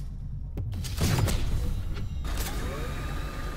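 An energy weapon fires in loud crackling bursts.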